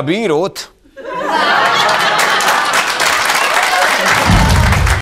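A studio audience claps and cheers loudly.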